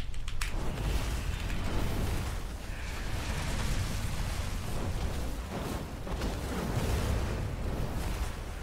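Magic spells whoosh and crackle in quick bursts.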